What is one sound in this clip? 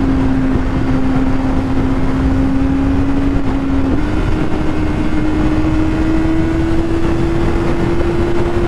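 A motorcycle engine hums steadily and rises slightly in pitch after a gear change.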